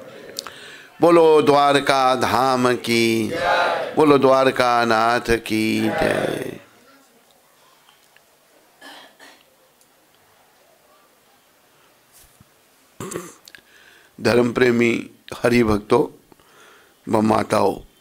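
An elderly man sings into a microphone.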